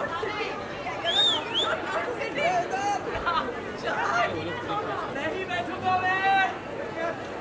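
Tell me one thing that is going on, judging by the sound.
Women cheer with high, shrill ululating cries.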